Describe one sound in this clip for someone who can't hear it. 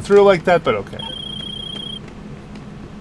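A phone rings with a short electronic tone.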